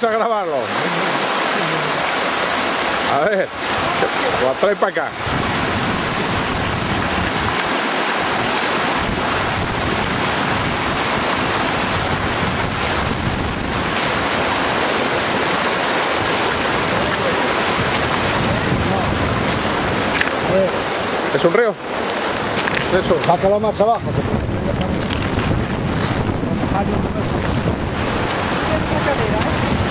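A shallow river rushes and burbles over stones nearby.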